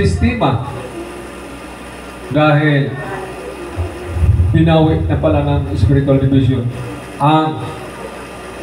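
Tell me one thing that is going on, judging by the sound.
A man speaks through a microphone and loudspeakers in an echoing hall, in short bursts with pauses.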